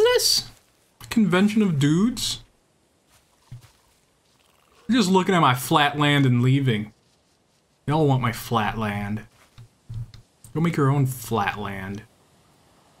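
A young man talks calmly into a close microphone, in bursts with pauses.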